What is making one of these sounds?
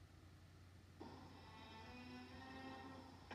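A film soundtrack plays quietly through a small laptop speaker.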